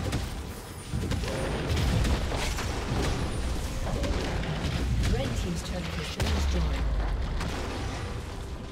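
Game spell blasts and sword hits crackle during a fast fight.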